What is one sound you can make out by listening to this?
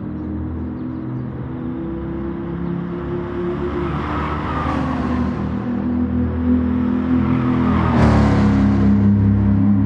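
Racing car engines roar as cars speed past.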